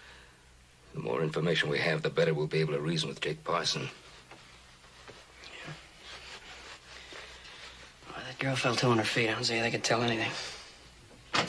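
An older man speaks calmly in a deep voice, close by.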